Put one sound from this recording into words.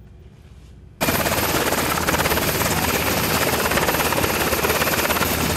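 A helicopter's rotor whirs loudly close by, with wind rushing.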